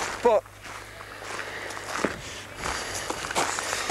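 A young man draws on a cigarette.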